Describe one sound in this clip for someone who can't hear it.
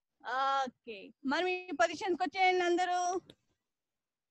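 A young girl sings into a microphone, close and clear.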